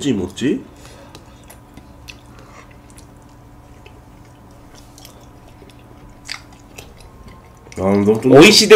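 A young man chews food with soft crunching sounds.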